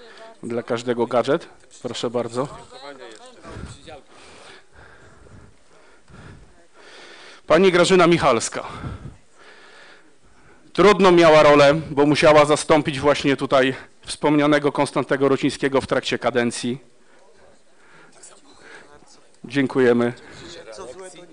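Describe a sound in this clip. A man speaks through a microphone in a large room, pausing now and then.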